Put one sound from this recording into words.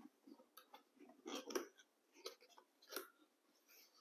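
Cardboard box flaps scrape and pop open.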